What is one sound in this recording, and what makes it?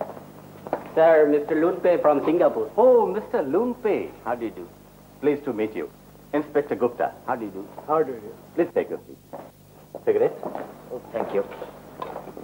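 Several men talk over one another with animation.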